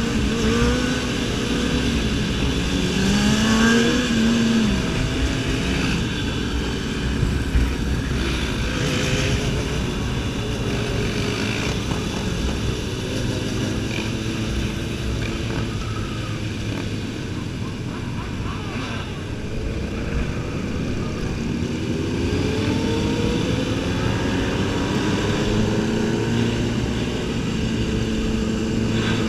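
A motorcycle engine roars and revs up and down close by.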